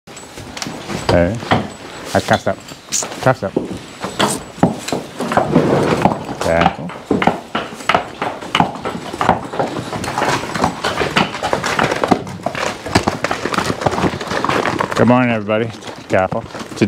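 Horse hooves clop slowly on hard ground.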